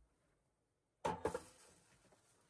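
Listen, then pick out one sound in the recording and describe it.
A metal pot is set down on a metal stove with a clunk.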